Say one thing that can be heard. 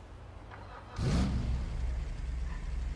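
A car engine starts and idles with a low rumble.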